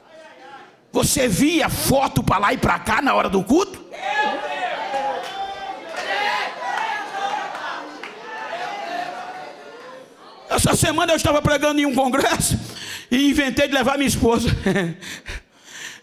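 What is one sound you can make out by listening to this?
A man preaches loudly and forcefully into a microphone in a large echoing hall.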